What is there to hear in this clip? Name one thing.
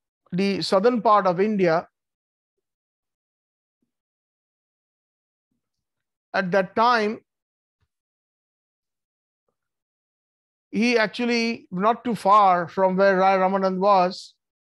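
A middle-aged man speaks calmly into a microphone, with long pauses.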